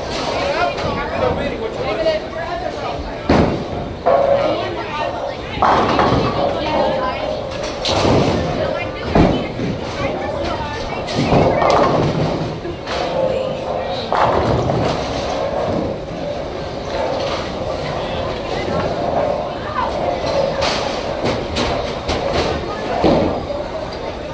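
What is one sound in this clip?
Busy chatter and clatter echo through a large hall.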